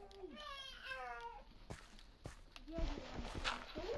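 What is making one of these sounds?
Dirt crunches in short bursts as it is dug away.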